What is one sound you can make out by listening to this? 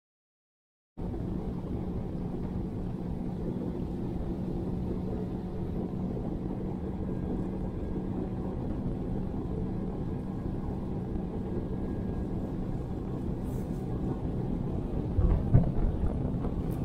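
Water laps gently against a small boat.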